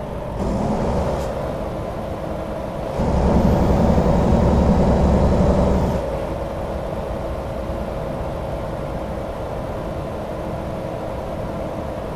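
A truck engine rumbles steadily, growing louder for a few seconds before settling.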